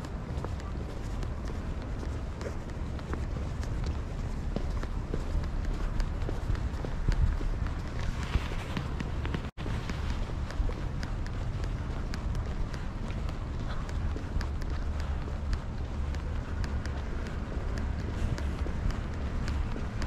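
Footsteps tap steadily on a paved street.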